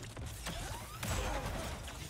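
Energy whooshes and swirls loudly.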